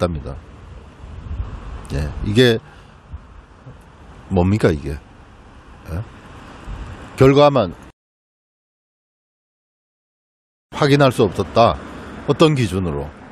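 A middle-aged man talks with animation into a clip-on microphone, close by.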